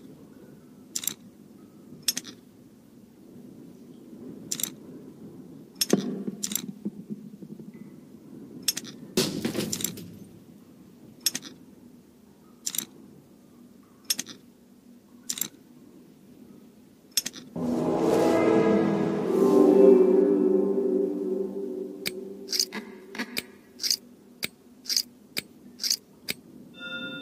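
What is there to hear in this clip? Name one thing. Soft clicks sound as knots are dragged into place, one after another.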